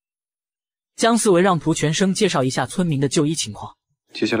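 A man speaks clearly and steadily.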